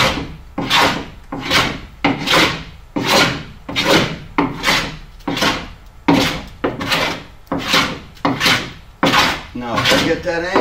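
A hand plane shaves wood in quick, rhythmic strokes.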